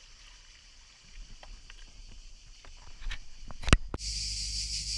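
A kayak hull scrapes and grinds over stones.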